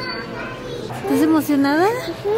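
A young child babbles and squeals loudly close by.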